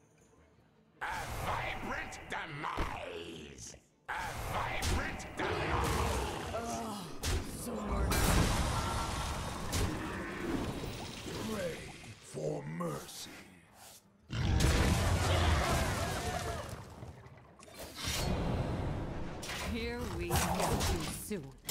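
Electronic spell effects whoosh, chime and crash in bursts.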